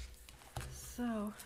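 A woman begins speaking calmly through a microphone.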